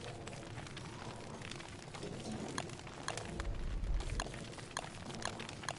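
Footsteps patter on dry ground.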